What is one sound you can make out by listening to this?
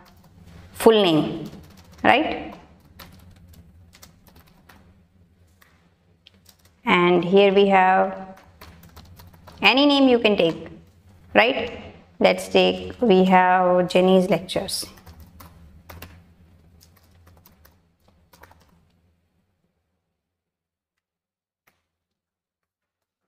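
Keys click softly on a keyboard.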